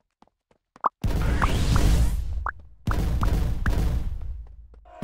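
A game's deep rumbling crash sounds.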